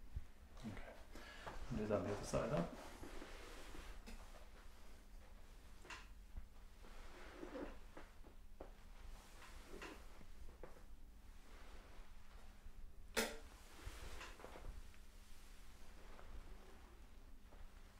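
Clothing rustles softly as a leg is bent and straightened.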